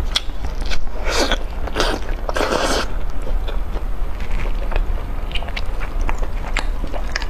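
A young woman chews and slurps loudly close to a microphone.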